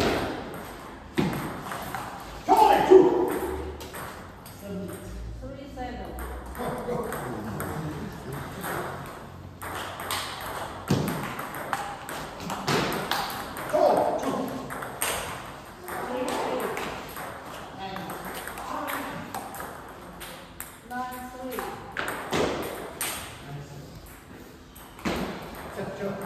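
Ping-pong balls click rapidly off paddles and tables in an echoing hall.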